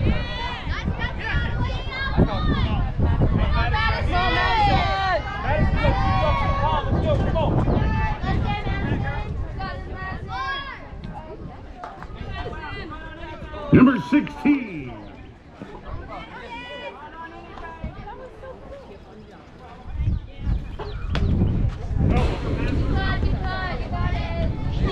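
Young players call out and chatter nearby outdoors.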